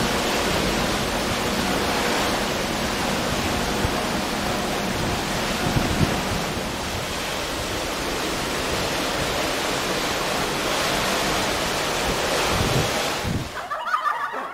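A ship's hull rushes through the sea.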